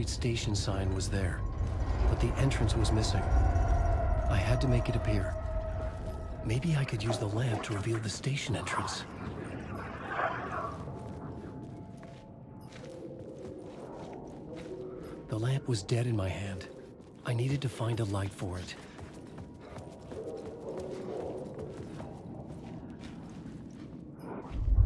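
Footsteps tread slowly on wet pavement.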